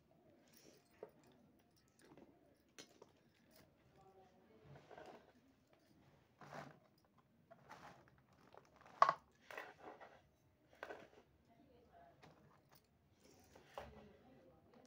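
Objects knock and clatter on a wooden board.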